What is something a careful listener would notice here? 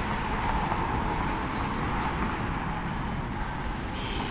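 Electric scooters hum past on a nearby road.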